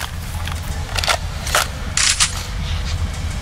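A rifle's metal parts click and clack as it is reloaded.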